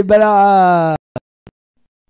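A man sings a long held note into a microphone.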